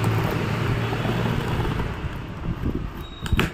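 A pen scrapes across a cardboard box.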